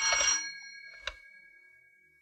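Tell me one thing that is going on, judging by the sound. A telephone receiver is lifted with a click.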